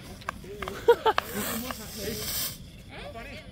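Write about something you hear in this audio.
A firework fountain hisses and crackles on the ground.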